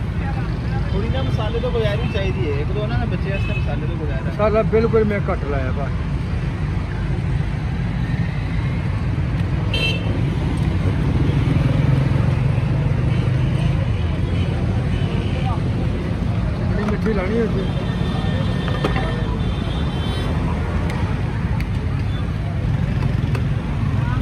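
Street traffic rumbles steadily in the background.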